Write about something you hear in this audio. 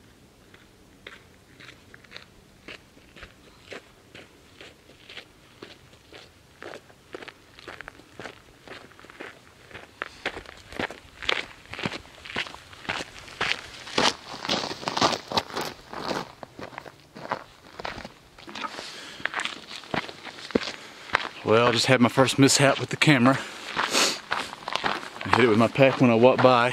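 Footsteps crunch on a gravel trail, growing louder as they approach.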